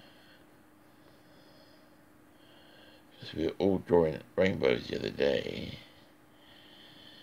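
A coloured pencil scratches softly across paper.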